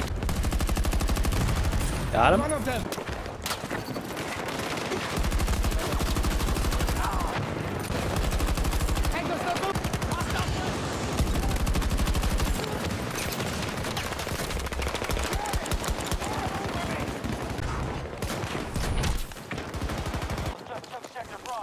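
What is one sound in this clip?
Rapid gunfire bursts loudly and close by.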